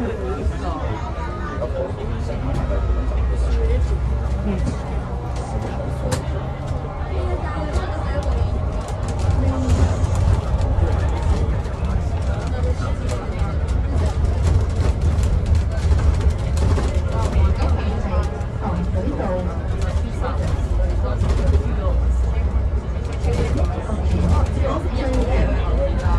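A bus engine rumbles low and steady while the bus drives along.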